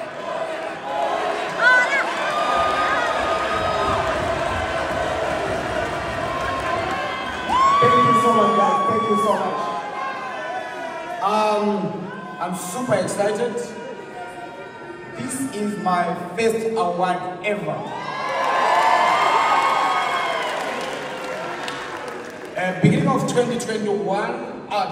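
A young woman sings through loudspeakers in a large hall.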